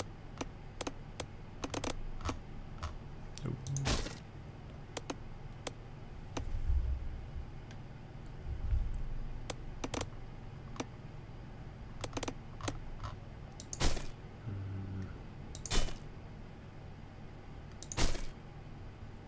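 Short interface clicks and ticks sound as a menu is browsed.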